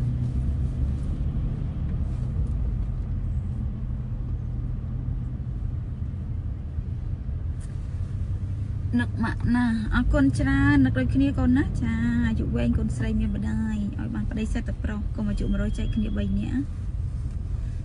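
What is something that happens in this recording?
A car engine hums low and steady inside the car.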